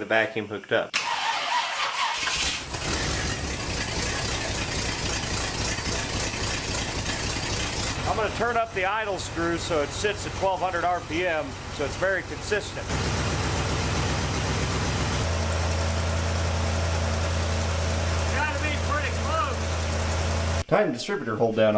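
A car engine runs with a steady, throbbing rumble.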